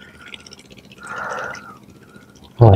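Water splashes and drips as a net is lifted out of a pond.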